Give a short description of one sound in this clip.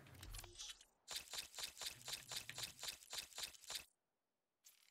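Quick soft ticks sound as menu items are marked one after another.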